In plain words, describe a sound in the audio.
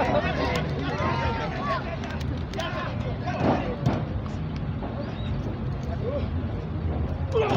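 A crowd shouts and cheers outdoors.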